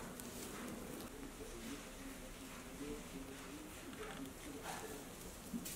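Fabric rustles as hands fold it.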